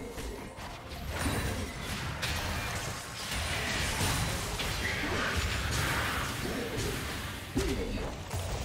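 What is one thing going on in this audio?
Spell blasts and hits crackle and boom in a busy fight.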